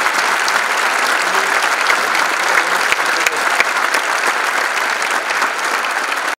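An orchestra plays in a large echoing hall.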